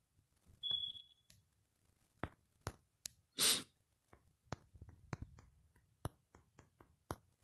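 Phone keyboard taps click quickly as someone types.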